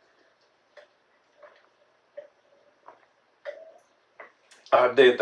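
A man gulps down a drink in loud swallows.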